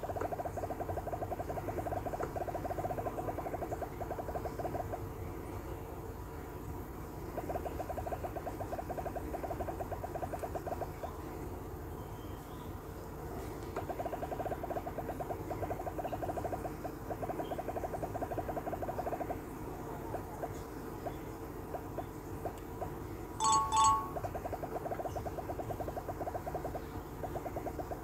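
Small balls tick rapidly as they bounce off blocks in a game.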